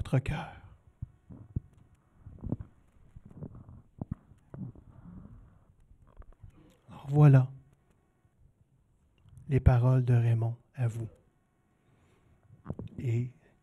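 A man speaks slowly and solemnly into a microphone in a room with some echo.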